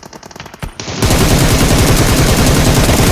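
A rifle fires in rapid automatic bursts.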